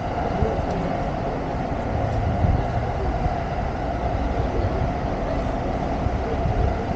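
Traffic hums steadily nearby.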